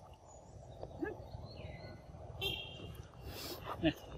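Monkeys squeak and chatter nearby.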